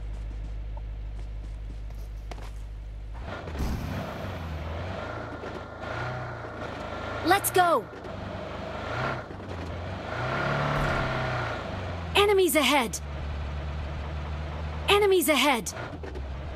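A car engine hums steadily as the car drives over rough ground.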